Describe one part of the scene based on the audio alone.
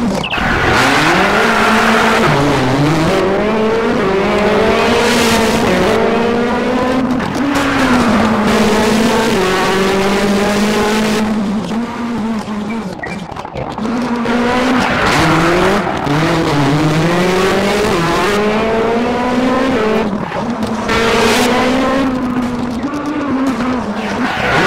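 A rally car engine revs hard, rising and falling as the gears change.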